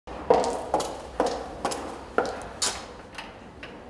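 High heels click on a hard floor as a woman walks.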